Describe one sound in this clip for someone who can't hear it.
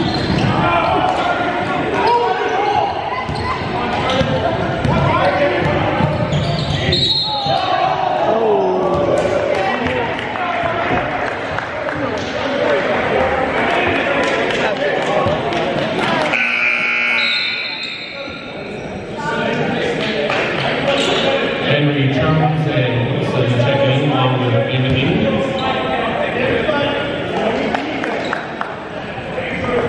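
Voices of players and spectators chatter and call out in an echoing gym.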